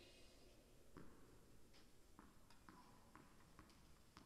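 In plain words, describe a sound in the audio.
A tennis ball bounces repeatedly on a hard floor in a large echoing hall.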